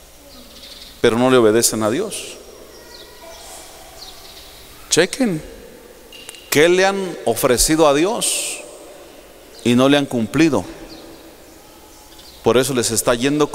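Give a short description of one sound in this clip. A man speaks with animation into a microphone, in bursts with pauses, in a reverberant hall.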